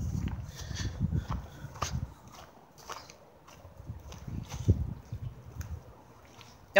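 Footsteps crunch on dry leaves and wood chips.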